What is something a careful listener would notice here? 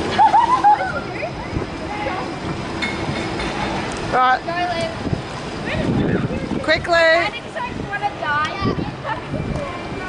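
Water splashes as girls wade through a shallow fountain.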